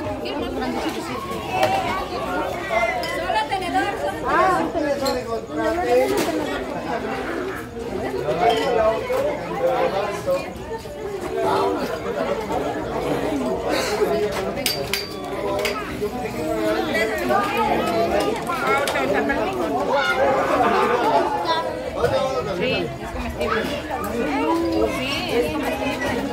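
A crowd of women and children chatters nearby outdoors.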